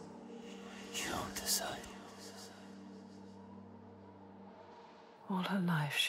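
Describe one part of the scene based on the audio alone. A young woman speaks softly and tensely nearby.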